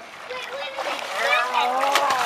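A young boy laughs loudly.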